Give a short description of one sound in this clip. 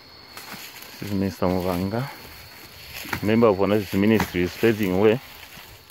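A man talks loudly outdoors.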